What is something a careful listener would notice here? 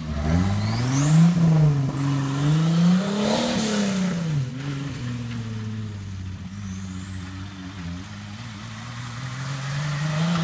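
An off-road vehicle's engine revs up and down, first close by and then farther off.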